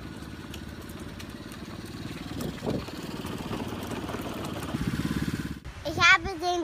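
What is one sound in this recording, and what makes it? An electric toy car motor whirs steadily.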